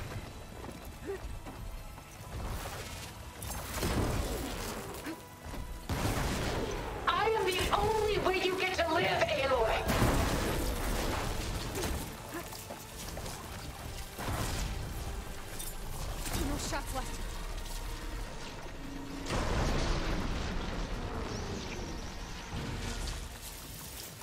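A spear clashes against a large machine creature in combat.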